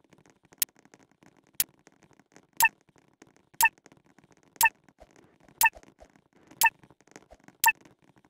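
A game's countdown beep sounds once every second.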